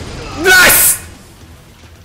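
A man shouts in pain as a blow lands.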